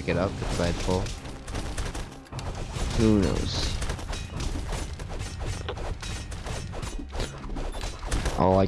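Swords clang and thump in a fast, busy fight.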